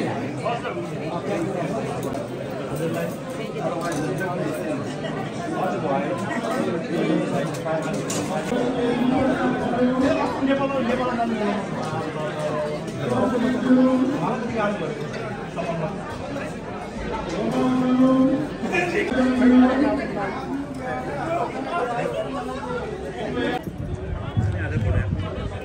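A crowd of people chatters in a large room.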